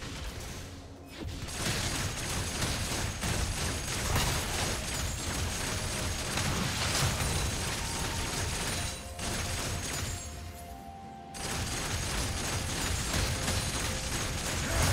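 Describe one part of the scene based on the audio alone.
Video game combat effects clash and crackle in quick bursts.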